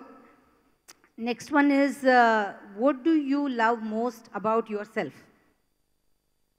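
A middle-aged woman reads out calmly into a microphone.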